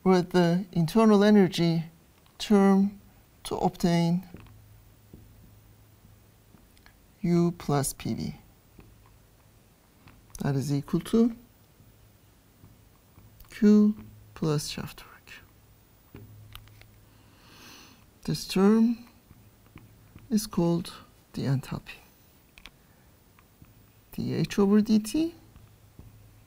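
An older woman speaks calmly and clearly into a close microphone, with pauses.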